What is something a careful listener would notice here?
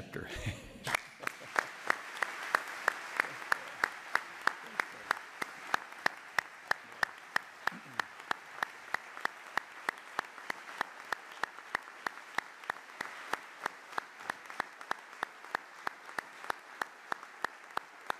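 A crowd applauds with steady rhythmic clapping.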